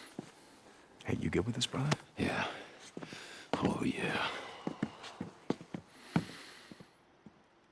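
A second man answers in a low, gruff voice.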